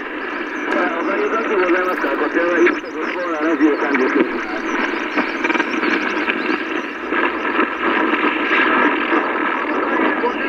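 A man talks through a crackly radio speaker.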